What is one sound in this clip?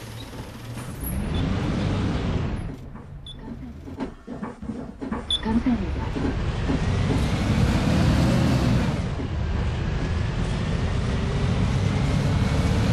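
A bus engine roars as the bus pulls away and speeds up.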